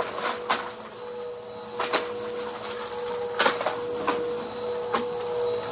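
A vacuum cleaner hums steadily as it rolls back and forth over carpet.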